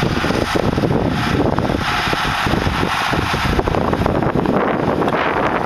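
A tractor engine roars steadily close by.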